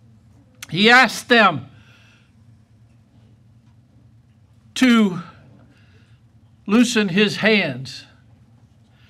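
An elderly man preaches forcefully into a microphone, in short loud bursts with pauses, heard in a room with some echo.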